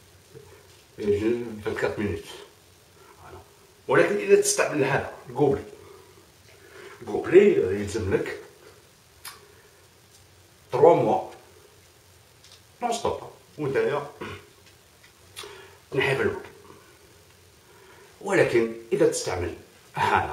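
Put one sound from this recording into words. A middle-aged man speaks close to a microphone with animation, in short bursts with pauses.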